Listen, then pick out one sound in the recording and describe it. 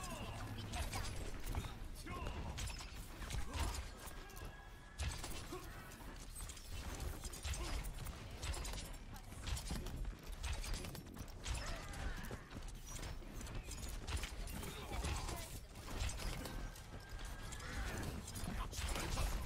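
Energy beams from a video game buzz and crackle.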